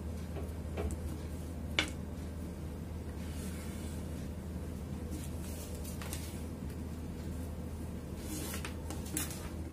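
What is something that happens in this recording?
Fabric rustles softly as hands smooth and handle it.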